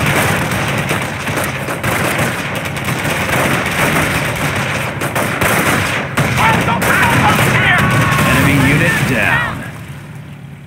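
Rapid gunfire crackles and explosions boom in a battle.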